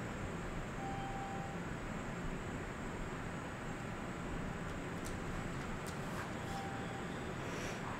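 A smartphone gives short beeps as its touchscreen is tapped.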